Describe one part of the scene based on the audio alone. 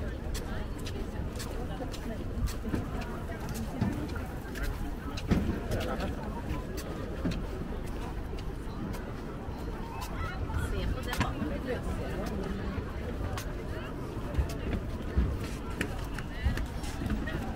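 People nearby chatter in a low murmur.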